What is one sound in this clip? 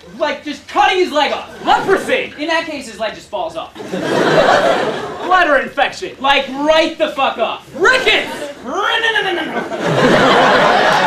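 Young men speak loudly with animation in front of an audience.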